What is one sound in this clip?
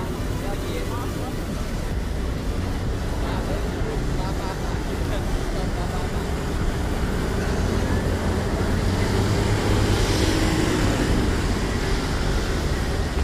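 Traffic rumbles steadily nearby.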